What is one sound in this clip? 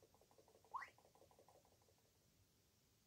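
Quick, bouncy video game notes chirp in a rapid run.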